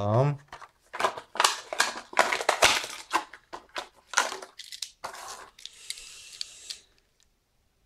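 Plastic packaging crinkles and tears.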